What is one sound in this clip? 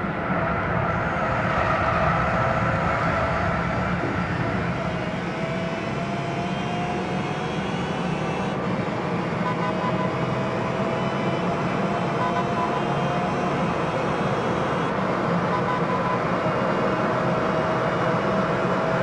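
A race car engine roars at high speed, its pitch slowly rising as it accelerates through the gears.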